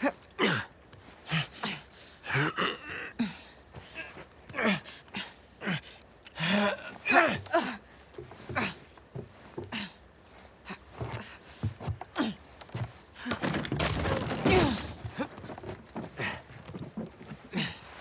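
Wooden rungs creak and knock as people climb a ladder.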